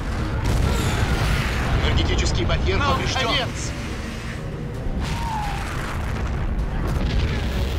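Fires crackle and burn.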